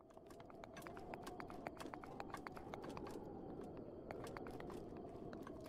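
Quick footsteps tap on stone.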